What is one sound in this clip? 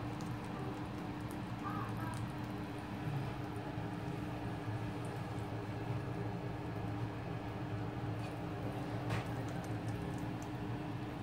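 Sauce bubbles and sizzles softly in a pan.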